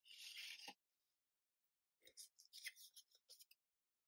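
Small wooden pieces tap and click lightly together.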